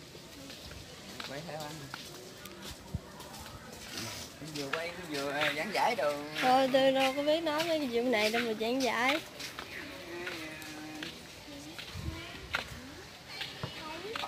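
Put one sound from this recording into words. Several people's footsteps sound on a paved walkway.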